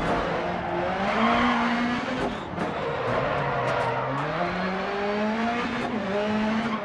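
A racing car engine revs up and down, rising and falling in pitch as it shifts gears.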